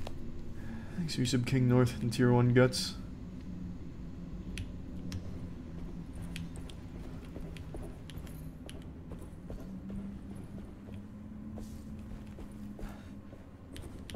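Footsteps tap on a stone floor.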